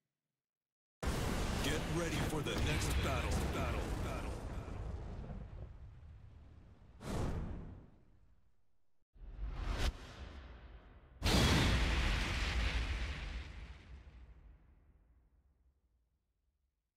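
Loud explosions boom and rumble away.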